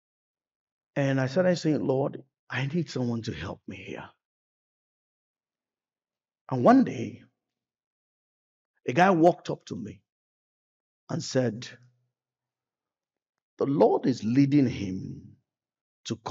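A man speaks with animation in pauses, heard through a microphone.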